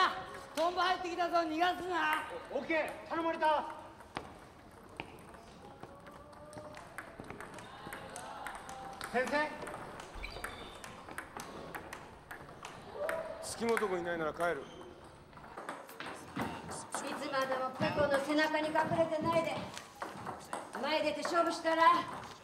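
Ping-pong balls click on tables.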